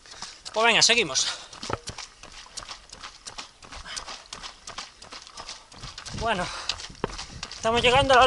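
Running footsteps patter steadily on the ground.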